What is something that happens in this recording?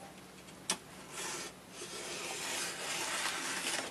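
A knife slits open a padded paper envelope.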